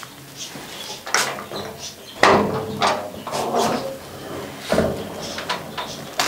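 Wooden wardrobe doors rattle and creak as they are opened.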